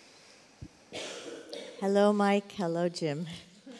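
A young woman speaks through a microphone with animation.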